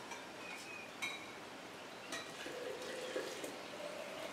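Glass and metal clink lightly.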